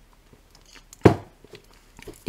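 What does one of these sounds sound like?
A mug knocks down onto a table.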